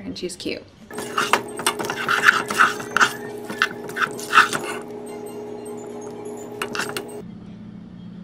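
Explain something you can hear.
A spoon scrapes and stirs pasta in a metal pot.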